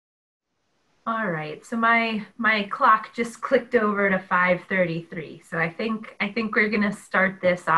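An older woman speaks with animation over an online call.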